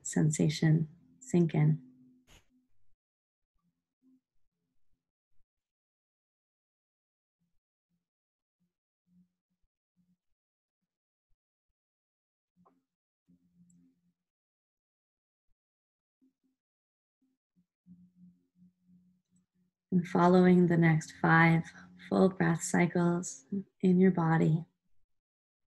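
A young woman speaks calmly and softly close to the microphone, with long pauses.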